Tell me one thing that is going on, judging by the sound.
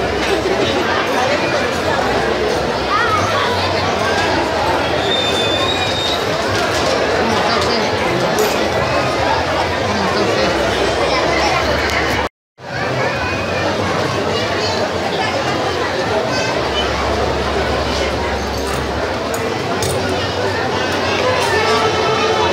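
A large crowd chatters loudly all around.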